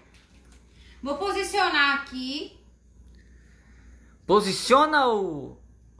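A young woman speaks close by in short, lively phrases.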